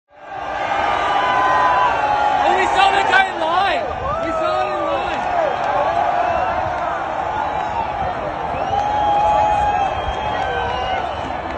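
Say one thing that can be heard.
Men in the crowd shout and whoop close by.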